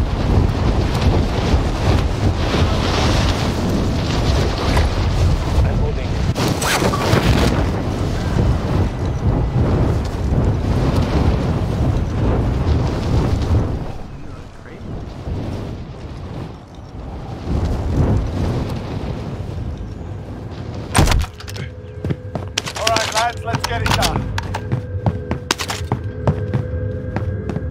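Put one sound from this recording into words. A young man talks into a microphone.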